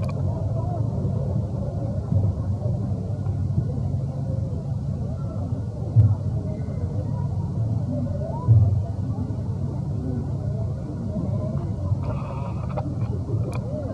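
A baby monkey whimpers and squeaks softly.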